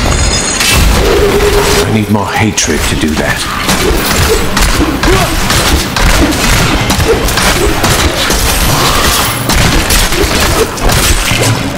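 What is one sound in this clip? Magic blasts crackle and burst.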